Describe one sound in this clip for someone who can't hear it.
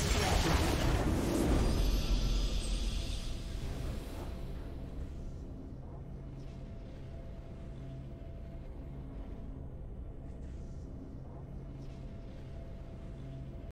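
A triumphant fanfare swells and plays on softly.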